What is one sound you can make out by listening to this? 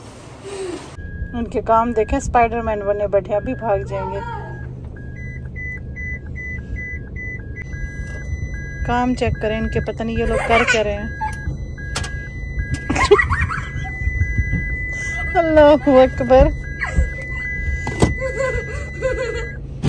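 A car's reversing alarm beeps in a steady, quick rhythm.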